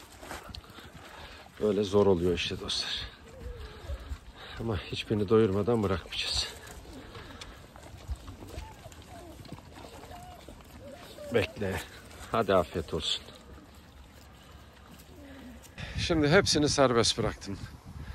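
Several dogs crunch and chew dry food up close.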